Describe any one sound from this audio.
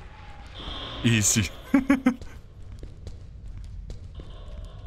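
A young man laughs briefly.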